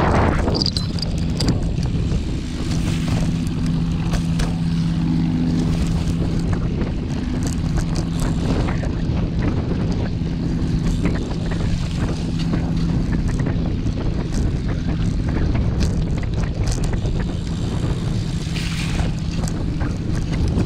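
Tyres roll and bump over a muddy dirt track.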